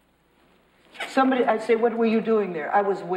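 An elderly woman speaks loudly and with feeling.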